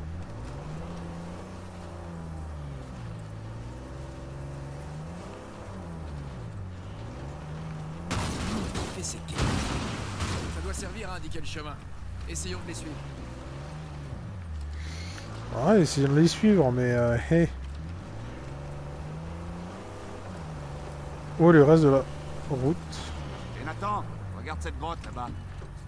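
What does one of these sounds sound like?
A jeep engine hums and revs up and down as it drives over rough ground.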